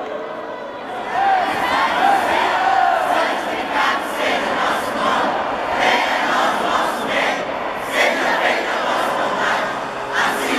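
A large crowd of men and women sings loudly together in a big echoing hall.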